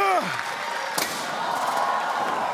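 A heavy box crashes onto the floor and breaks apart.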